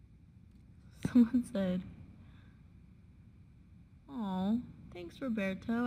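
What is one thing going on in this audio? A young woman talks casually and close to a phone microphone.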